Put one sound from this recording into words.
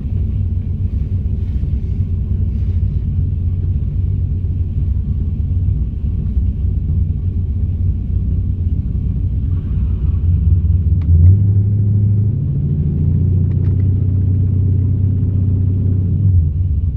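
A car engine idles with a low, steady rumble, rising slightly in pitch partway through.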